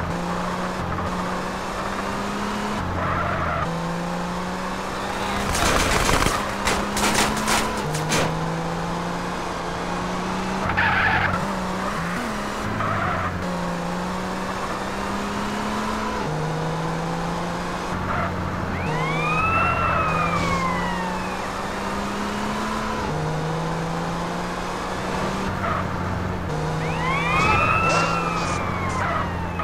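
A sports car engine hums steadily, dropping in pitch at each gear change.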